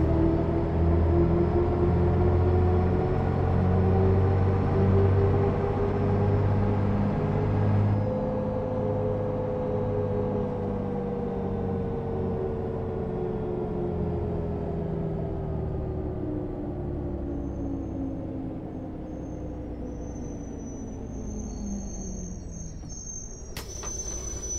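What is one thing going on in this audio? A bus engine hums steadily and slowly winds down as the bus slows.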